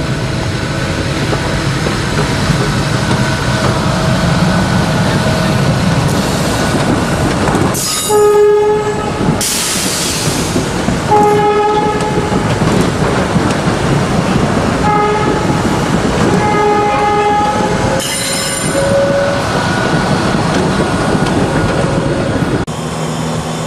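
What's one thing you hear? An electric train rumbles past close by, wheels clattering on the rails.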